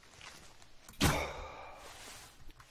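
A bow string snaps as an arrow is shot.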